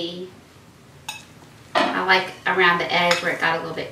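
A spoon scrapes in a dish.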